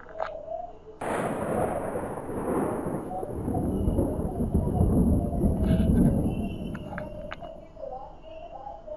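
Thunder cracks nearby and rolls into a long, deep rumble that slowly fades.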